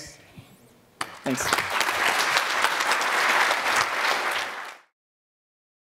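An audience applauds loudly, then the sound cuts off.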